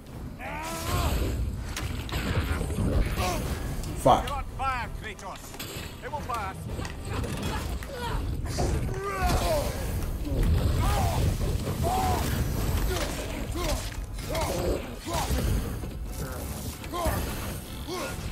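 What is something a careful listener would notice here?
An axe strikes with heavy thuds.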